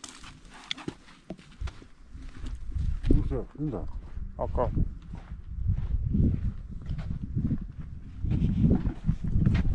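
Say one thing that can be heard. Footsteps scuff on dry ground.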